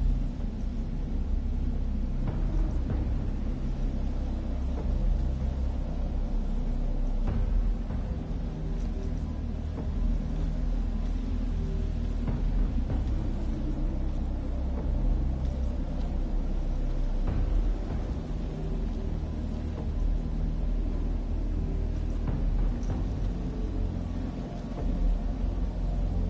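Footsteps tread through grass.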